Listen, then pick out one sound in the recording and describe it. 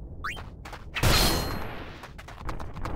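A sword strikes with a sharp burst.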